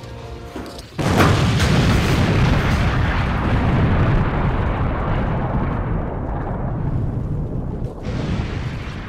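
An explosion booms and rumbles, slowly fading.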